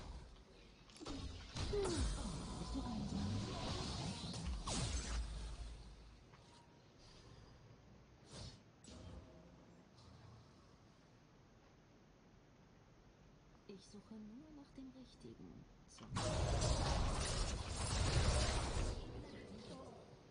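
Game characters clash in battle with magic blasts and hits.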